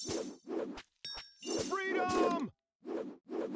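Short electronic game chimes ring out.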